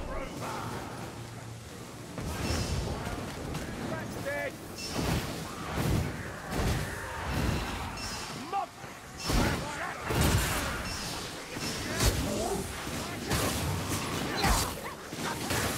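Sword blades swing and slash with sharp metallic hits.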